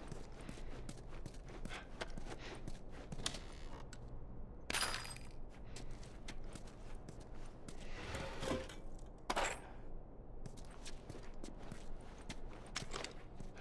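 Footsteps tread slowly across a hard, gritty floor.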